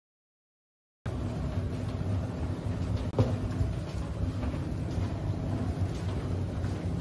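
A loaded hand cart rolls and rumbles along a hard floor.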